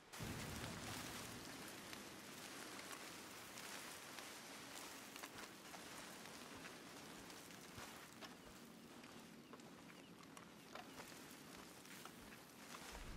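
Footsteps crunch and rustle through dry brush.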